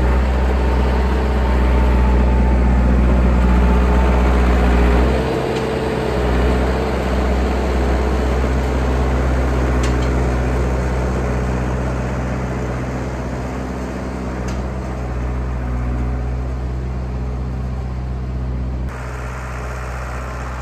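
A diesel engine rumbles steadily close by and slowly moves away.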